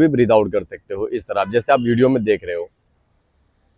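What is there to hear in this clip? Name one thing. A young man speaks calmly and closely into a clip-on microphone.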